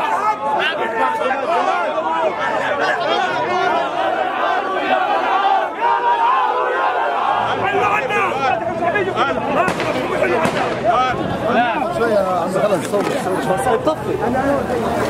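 A large crowd of men shouts angrily outdoors, close by.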